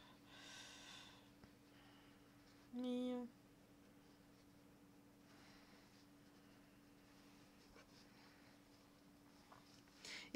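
A coloured pencil scratches softly on paper.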